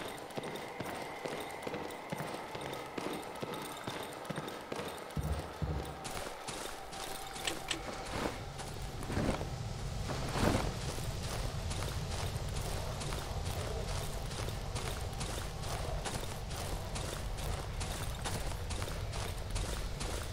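Footsteps tread steadily over rough ground.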